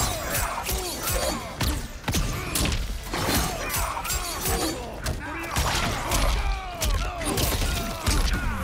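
Magical energy whooshes and crackles.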